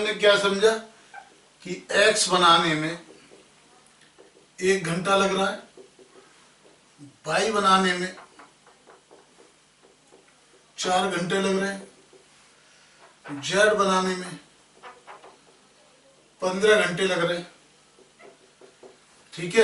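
A man speaks in short bursts with pauses, close to a microphone.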